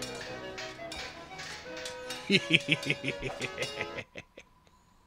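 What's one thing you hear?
Bright, tinny fanfare music plays and then stops abruptly.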